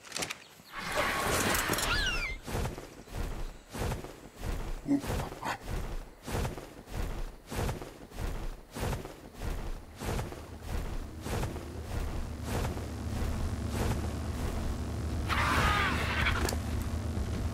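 A large bird screeches shrilly.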